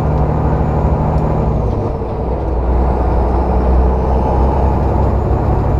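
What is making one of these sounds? A passing truck roars by close alongside.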